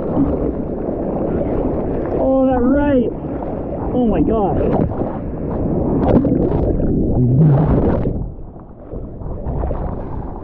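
Surf churns and splashes close by.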